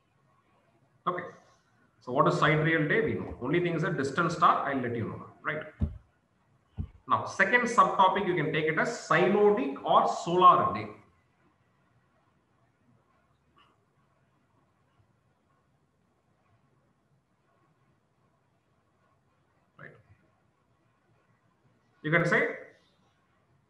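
A man speaks calmly, lecturing through a microphone.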